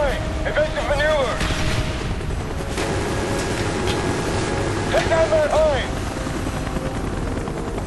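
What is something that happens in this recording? A helicopter's rotor thumps and its engine roars steadily.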